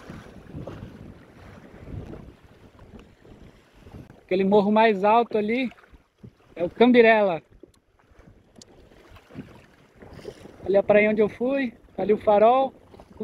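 Water splashes and rushes against a small boat's hull.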